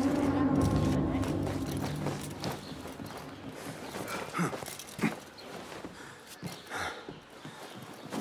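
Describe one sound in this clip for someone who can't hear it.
Footsteps patter quickly across a rooftop.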